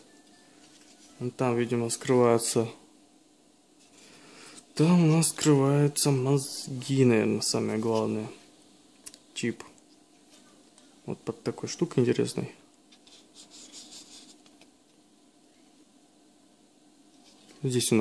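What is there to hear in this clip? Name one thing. A plastic circuit board clicks and rubs faintly as hands turn it over.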